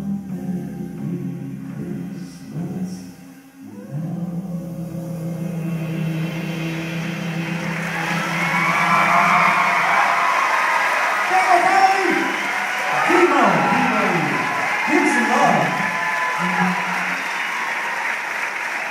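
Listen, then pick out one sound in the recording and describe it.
A drummer plays a drum kit.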